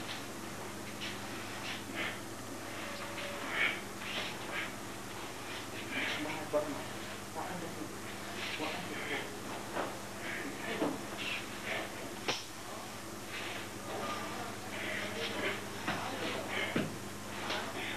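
Bare feet shuffle and slap on a hard floor.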